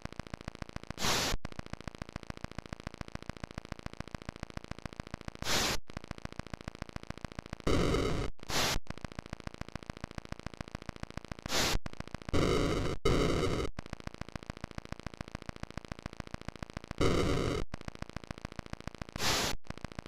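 Missiles launch with short hissing bursts of electronic noise.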